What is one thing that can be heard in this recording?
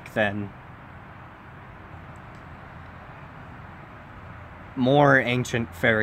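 A young man speaks calmly into a close microphone, with pauses.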